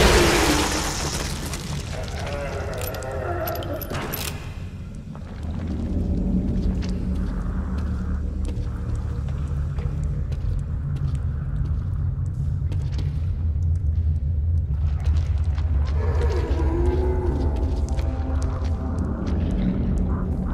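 A creature growls and shrieks nearby.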